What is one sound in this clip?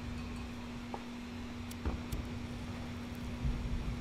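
A lighter clicks and flicks.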